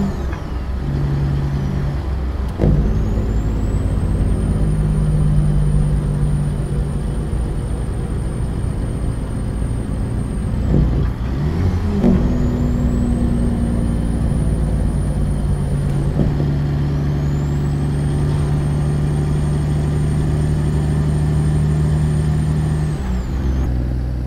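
A truck engine rumbles steadily at highway speed.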